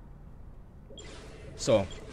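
A game menu chime sounds with a descending electronic swoosh.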